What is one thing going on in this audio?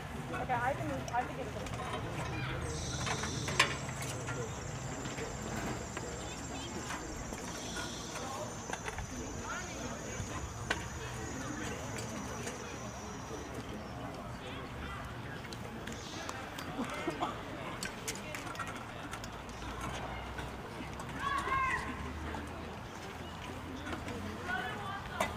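Young people chatter quietly in the background.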